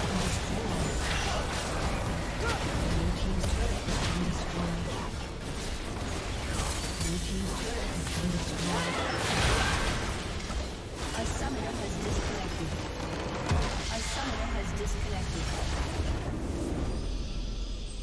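Game spells and attacks crackle and clash in a noisy battle.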